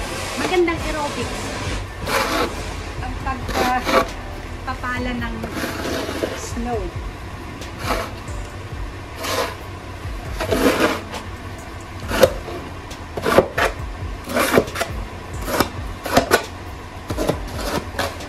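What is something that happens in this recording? A shovel scrapes and crunches through snow.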